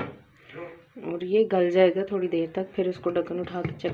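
A glass lid clinks onto a pot.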